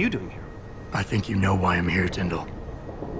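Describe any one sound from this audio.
A man answers calmly in a deep voice.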